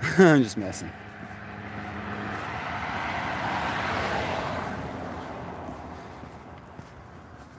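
A car drives past on a road outdoors, swelling and then fading.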